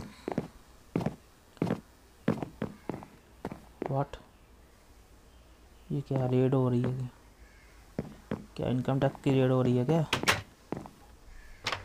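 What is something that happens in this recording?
Footsteps thud on wooden planks at a steady walking pace.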